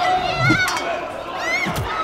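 Men scuffle and shout nearby.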